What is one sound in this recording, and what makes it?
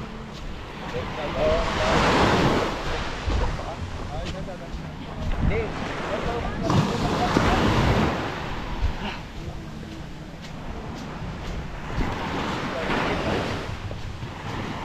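Waves wash onto the shore in surges.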